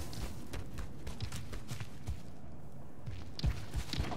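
Light footsteps patter on stone.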